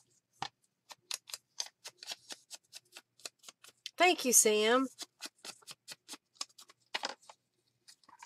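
A sponge dauber taps rapidly on paper.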